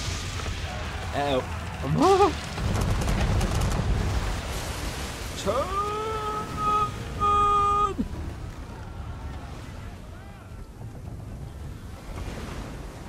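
Rough sea waves roar and crash.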